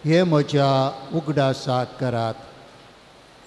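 An older man chants in a singing voice through a microphone.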